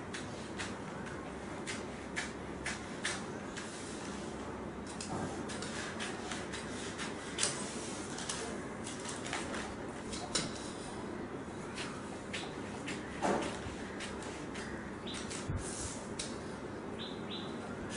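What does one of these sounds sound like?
Newspaper rustles and crinkles under a hand.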